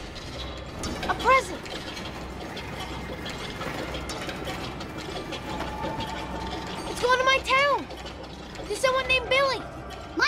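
A young girl speaks excitedly, close by.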